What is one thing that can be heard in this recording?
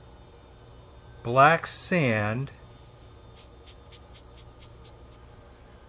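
A finger presses softly into fine powder.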